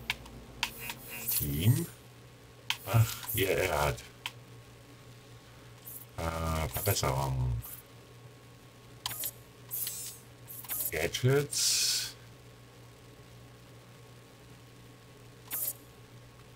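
Short electronic menu clicks sound as selections change.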